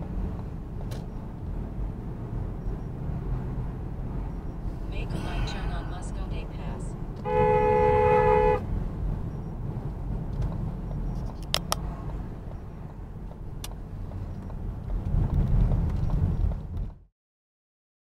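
Tyres rumble steadily on a road from inside a moving car.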